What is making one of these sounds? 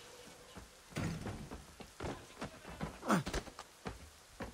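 A man thuds to the ground in a fall.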